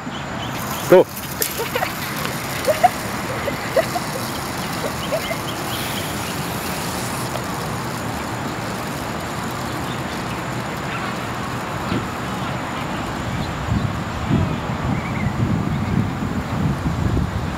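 Skateboard wheels roll and rumble over rough asphalt.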